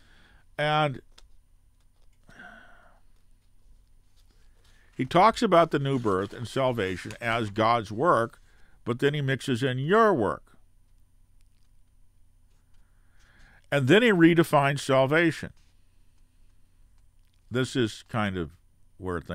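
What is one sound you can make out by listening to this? An elderly man speaks calmly and close into a microphone, in short bursts with pauses.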